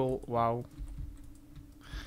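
Fire crackles softly in furnaces.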